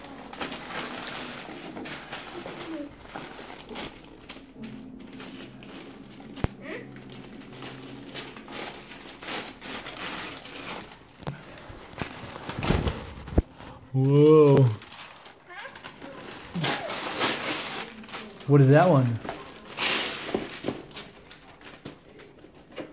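Wrapping paper crinkles and tears as a small child unwraps a gift.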